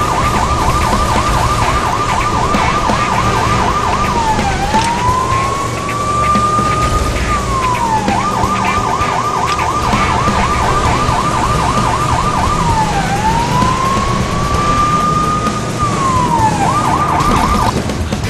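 A police siren wails steadily, alternating between a fast yelp and a slow rising wail.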